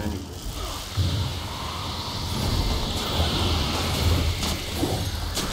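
A magical blast whooshes loudly.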